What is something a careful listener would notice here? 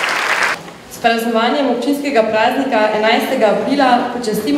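A small group of young girls sings in harmony through microphones.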